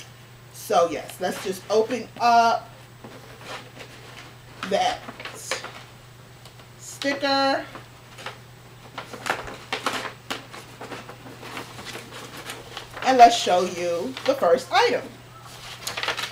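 A cardboard box rustles and scrapes as it is opened.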